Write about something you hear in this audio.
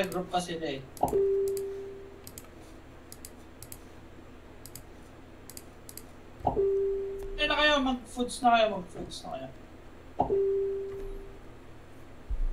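A game menu plays short bright chimes as items are selected.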